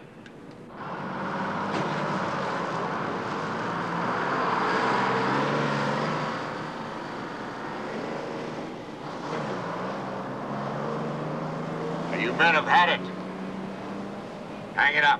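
A bus engine rumbles as the bus drives past.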